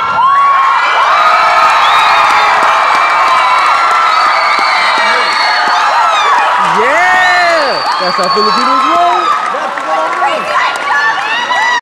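A crowd of children squeals and shouts excitedly in a hall.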